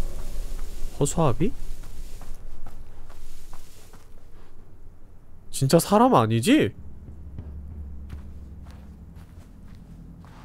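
Light footsteps rustle through dry grass.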